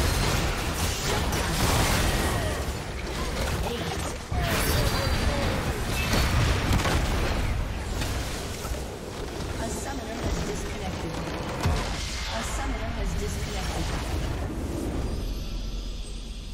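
Spell effects and blasts crash and whoosh in a game battle.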